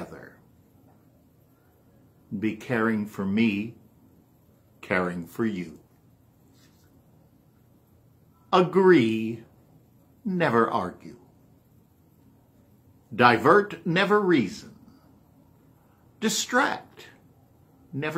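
An older man speaks calmly and close to a microphone, in short phrases with pauses.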